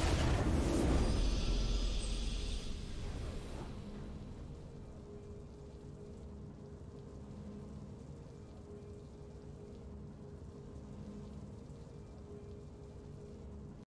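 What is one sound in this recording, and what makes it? A soft triumphant music theme plays quietly.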